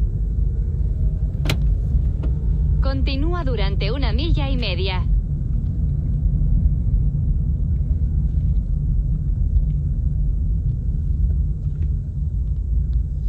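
A car drives along a paved road, heard from inside the cabin as a low rumble.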